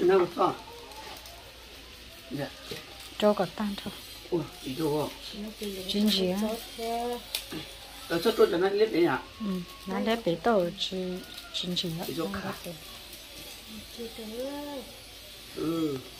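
Plastic packets crinkle and tear open.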